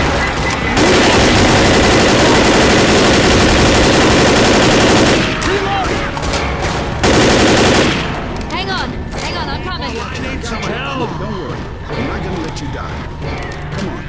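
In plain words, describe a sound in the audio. Zombies snarl and shriek close by.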